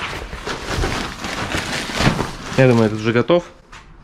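A plastic tarp crinkles as hands handle it.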